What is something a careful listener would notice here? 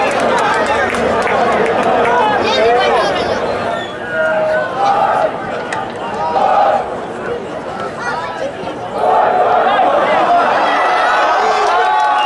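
A large stadium crowd chants and cheers loudly.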